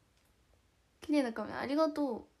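A young woman speaks animatedly, close to a microphone.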